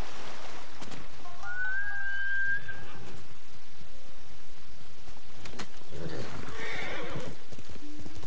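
Footsteps rustle through tall grass as someone runs.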